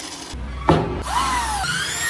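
An electric drill whirs as it bores into wood.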